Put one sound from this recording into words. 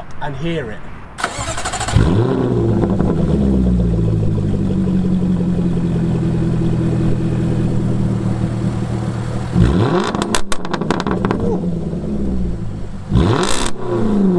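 A sports car engine revs hard and roars, then drops back.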